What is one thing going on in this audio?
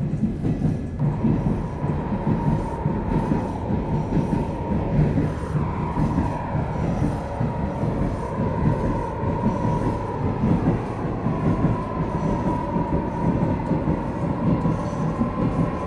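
An electric motor whines with a steady, slowly rising hum.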